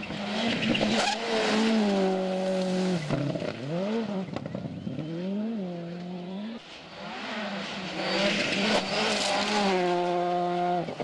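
A rally car engine roars and revs up and down as the car passes at speed.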